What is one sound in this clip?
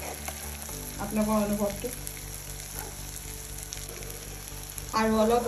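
Oil sizzles and bubbles steadily in a frying pan.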